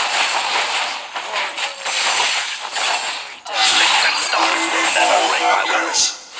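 Video game battle effects clash and crackle steadily.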